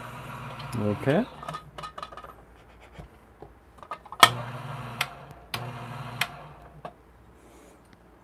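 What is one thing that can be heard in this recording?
A lid clinks and taps against a grinder.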